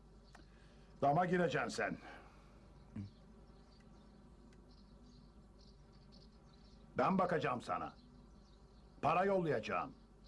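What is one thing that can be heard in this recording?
An elderly man speaks calmly and gruffly, close by.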